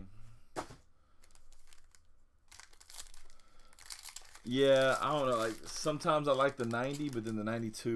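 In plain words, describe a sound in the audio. A foil pack crinkles as it is torn open.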